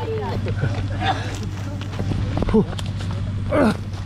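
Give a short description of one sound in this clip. Footsteps crunch on dry leaves and twigs.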